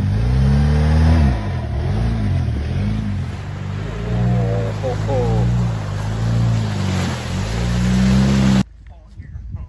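An engine rumbles and revs up and down.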